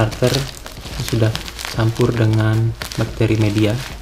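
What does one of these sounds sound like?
A plastic bag of gravel crinkles as it is handled.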